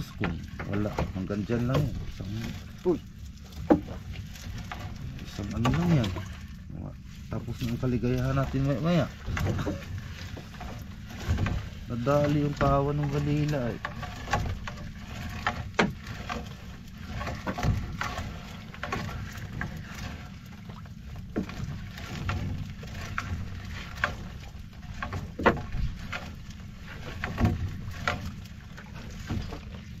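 A wet fishing net rustles and drips as it is hauled into a boat.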